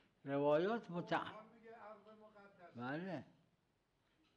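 An elderly man speaks slowly and solemnly through a microphone.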